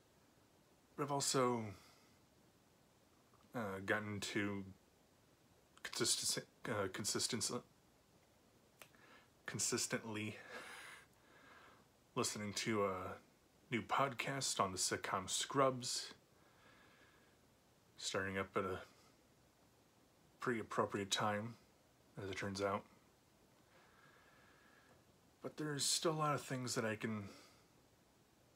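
A young man speaks calmly and close up, with pauses between phrases.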